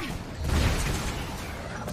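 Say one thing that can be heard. Jet boots roar and whoosh in short bursts.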